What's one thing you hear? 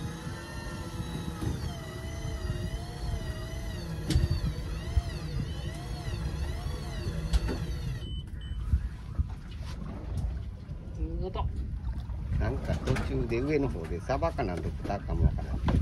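Wind rumbles outdoors on open water.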